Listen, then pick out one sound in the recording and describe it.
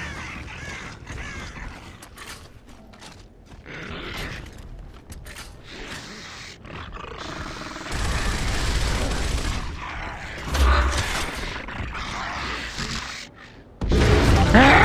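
Heavy boots thud on the ground as a soldier runs.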